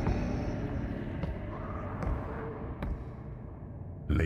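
Heavy footsteps thud slowly on a stone floor.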